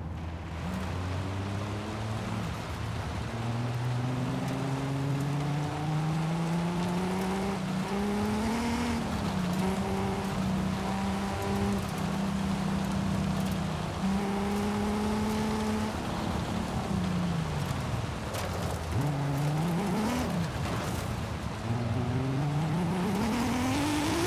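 A car engine roars and revs up and down through the gears.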